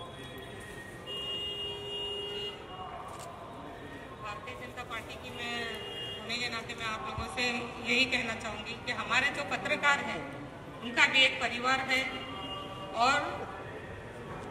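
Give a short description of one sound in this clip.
A woman sings into a microphone on a loudspeaker.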